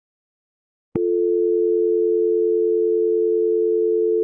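A telephone dial tone hums steadily.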